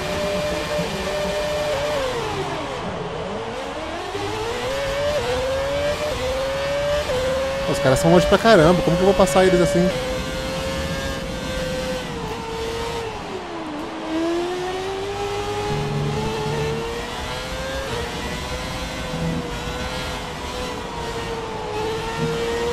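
A racing car engine whines, rising and falling in pitch as the car speeds up and slows down.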